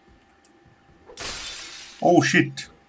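Window glass shatters with a sharp crash.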